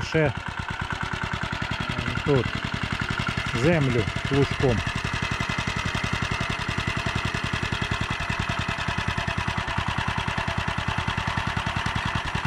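A small petrol engine chugs steadily close by.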